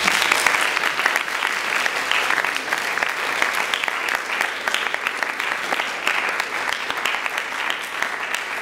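An audience claps steadily in an echoing hall.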